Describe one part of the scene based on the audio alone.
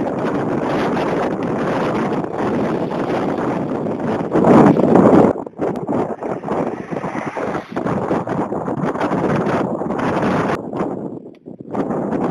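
Wind rushes past the microphone outdoors.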